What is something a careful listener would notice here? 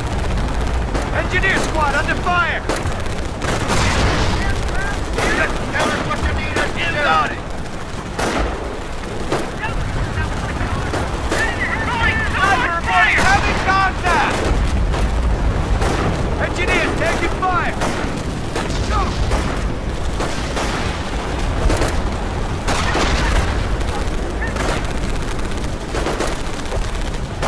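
Rifles fire in short, scattered bursts.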